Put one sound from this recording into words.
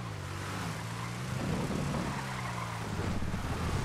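A car's tyres screech as it slides sideways.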